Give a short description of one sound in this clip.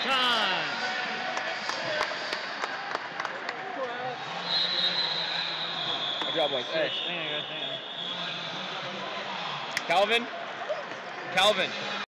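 A crowd of spectators chatters in a large echoing hall.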